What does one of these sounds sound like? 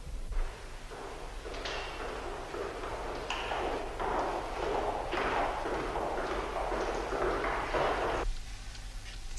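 Footsteps echo along a large hall.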